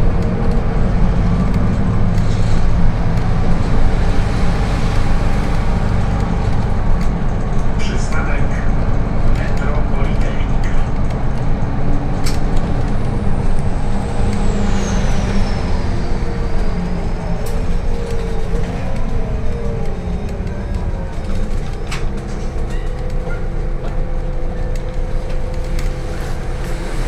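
The bus rattles and hums as it drives along the road.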